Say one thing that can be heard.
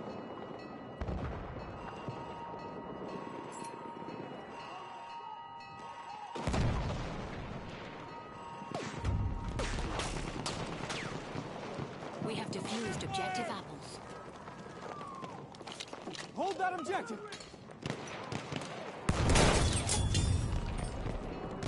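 Rifle shots crack loudly and boom away.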